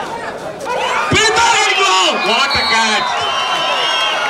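A crowd cheers and shouts loudly in a large open arena.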